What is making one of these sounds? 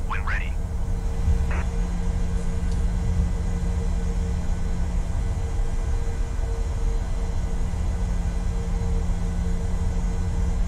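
Jet engines hum low and steady as an airliner rolls along the ground.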